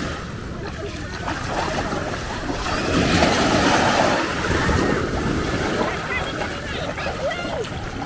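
A person wades through shallow water with splashing steps.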